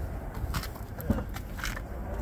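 A car door latch clicks open.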